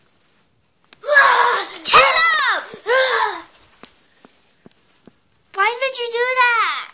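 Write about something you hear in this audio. A young girl squeals in high-pitched bursts, close by.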